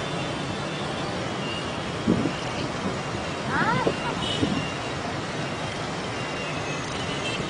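Many motorbike engines hum and buzz steadily through busy traffic.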